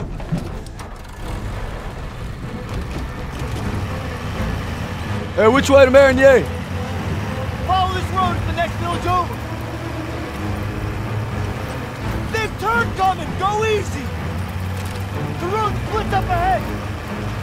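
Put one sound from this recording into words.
An engine rumbles steadily as a vehicle drives over a rough road.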